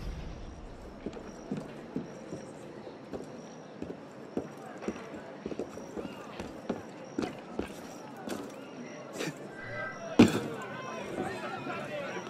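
Footsteps thud and scrape on roof tiles.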